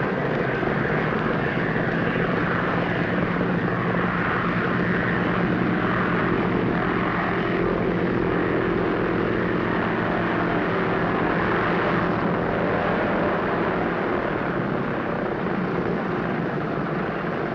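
Propeller engines of an airplane roar steadily close by.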